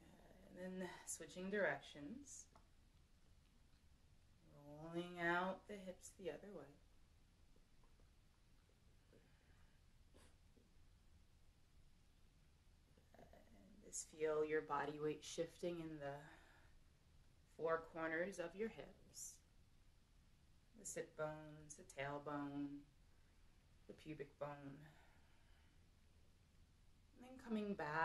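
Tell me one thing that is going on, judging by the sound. A young woman speaks calmly and slowly close by, with long pauses.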